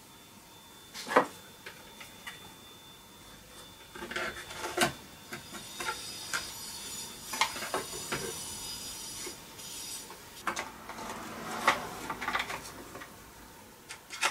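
Metal tools clink and knock against an engine.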